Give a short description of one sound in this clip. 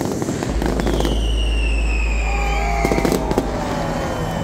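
Fireworks crackle and pop loudly outdoors.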